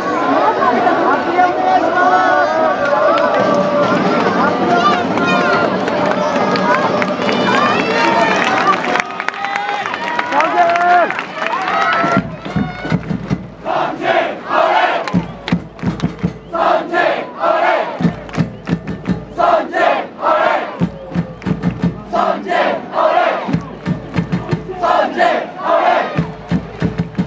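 A large stadium crowd whistles and chants loudly outdoors.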